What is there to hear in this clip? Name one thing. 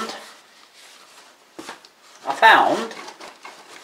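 Dry packing material rustles and crackles as hands dig through it.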